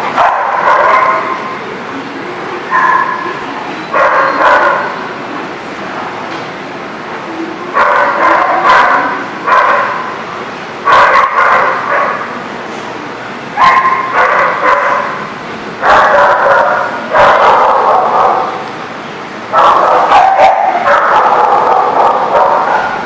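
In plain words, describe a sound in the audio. Two dogs growl and bark playfully, close by.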